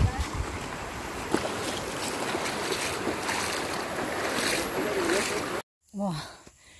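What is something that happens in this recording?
Bare feet splash through shallow water.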